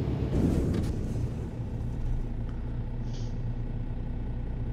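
A truck engine idles after the truck comes to a stop.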